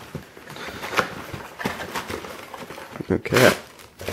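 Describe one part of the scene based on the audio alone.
Plastic wrapping crinkles as hands handle it.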